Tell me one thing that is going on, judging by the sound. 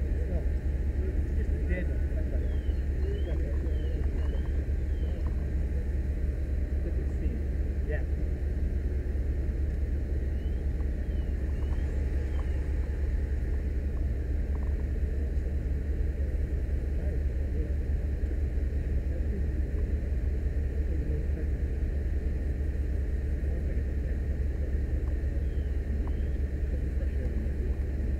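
Wind blows steadily outdoors, rumbling across the microphone.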